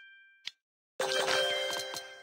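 A short sparkling jingle rings out.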